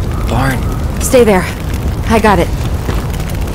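A young woman speaks in a strained, breathless voice.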